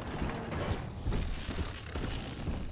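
Electricity crackles and buzzes close by.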